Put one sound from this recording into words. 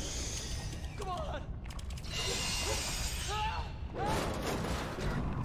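A man shouts loudly in desperation.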